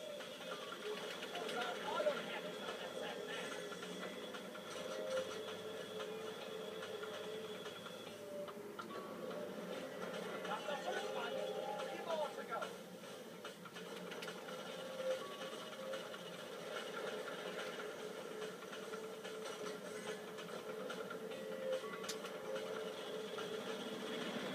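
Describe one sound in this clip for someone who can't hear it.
Video game machine-gun fire bursts through a television speaker.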